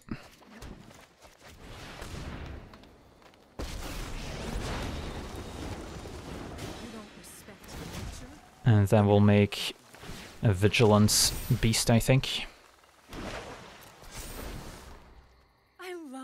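Magical whooshing and chiming effects play as cards are cast.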